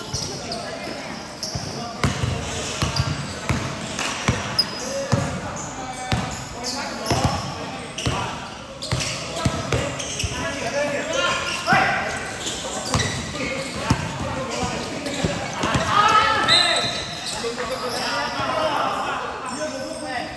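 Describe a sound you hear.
Sneakers squeak on the court.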